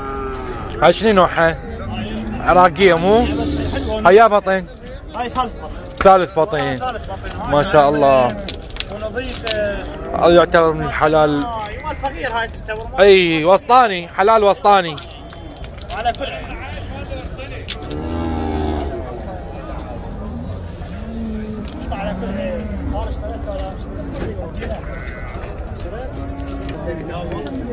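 A crowd of men murmurs in the background outdoors.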